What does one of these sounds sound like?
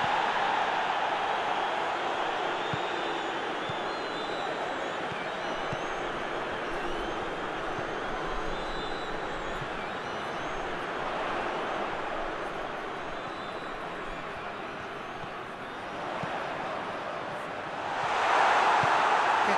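A stadium crowd roars and cheers steadily, swelling loudly near the end.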